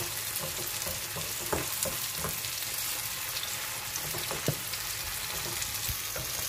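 A plastic spatula scrapes and taps against a frying pan.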